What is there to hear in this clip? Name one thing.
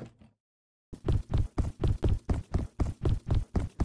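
Quick footsteps thud in a steady rhythm.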